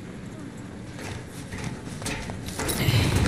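Boots step across a metal floor.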